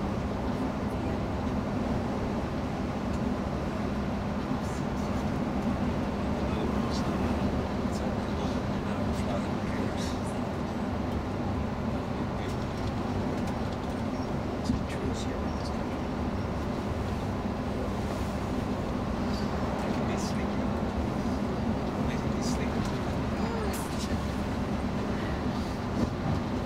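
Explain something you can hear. A vehicle's engine drones steadily as it drives along a highway.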